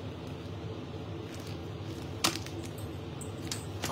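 A leather handbag rustles and knocks as it is handled.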